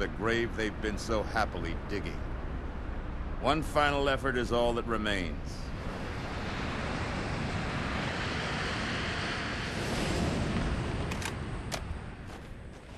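A large aircraft roars as it flies past overhead.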